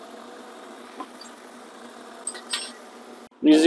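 A metal fitting clicks softly as a hand adjusts it.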